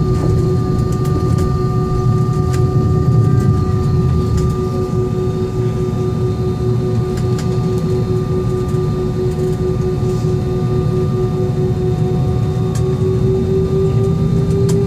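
Jet engines hum and whine steadily from inside an airliner cabin.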